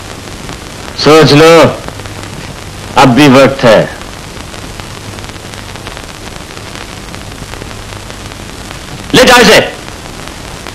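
A man speaks loudly and forcefully in short bursts.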